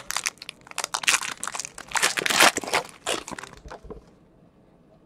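A foil wrapper crinkles and tears loudly close by.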